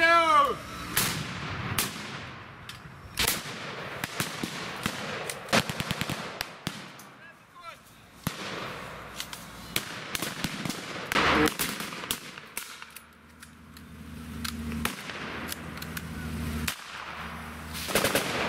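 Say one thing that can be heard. Rifles fire sharp shots.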